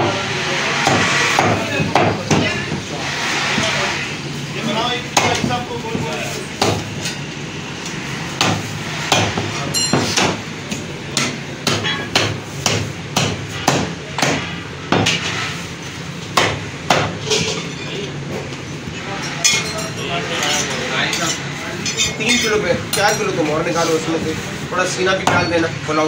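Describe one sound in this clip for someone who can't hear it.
A cleaver chops through meat and bone onto a wooden block with sharp thuds.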